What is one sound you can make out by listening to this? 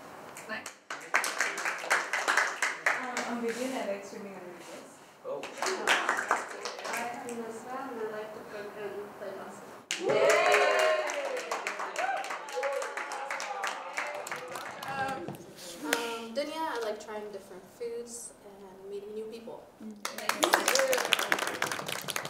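A group of young people laughs.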